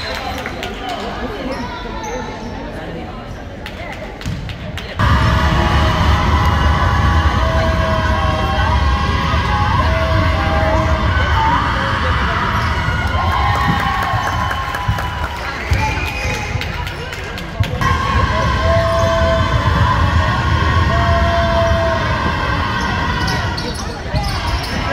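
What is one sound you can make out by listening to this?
A crowd of spectators chatters in a large echoing gym.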